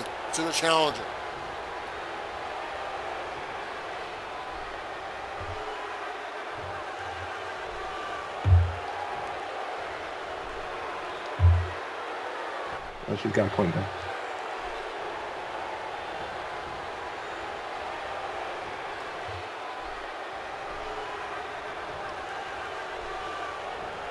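A large crowd murmurs steadily in a big arena.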